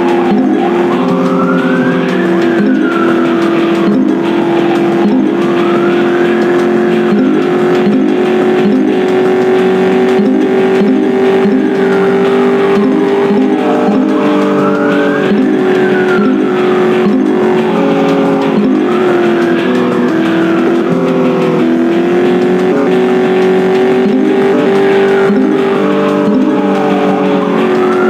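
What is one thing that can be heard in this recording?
A police siren wails, slowly rising and falling over and over.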